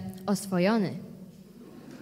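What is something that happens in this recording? A girl's voice rings out through a microphone in a large echoing hall.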